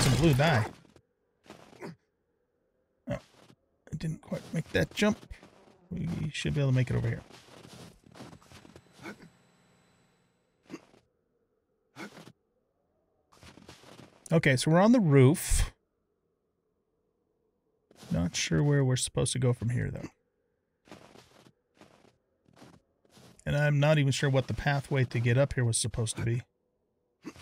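A man talks calmly into a close microphone.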